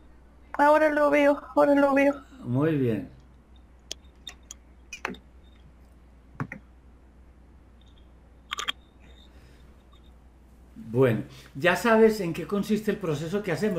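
An older man talks calmly over an online call.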